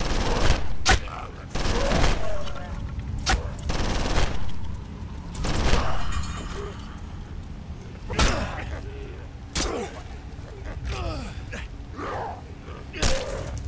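Gunshots crack sharply several times.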